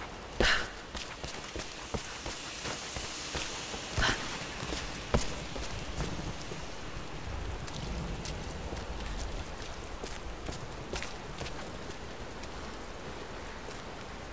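Footsteps crunch on stone and rubble.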